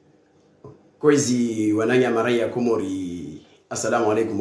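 A man speaks calmly, close to the microphone.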